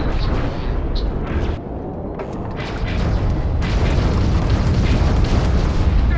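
An explosion booms and crackles.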